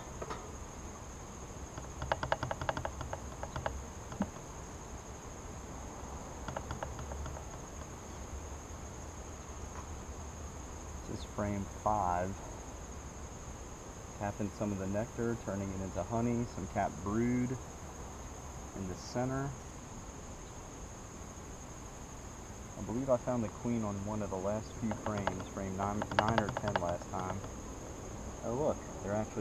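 Bees buzz around a hive.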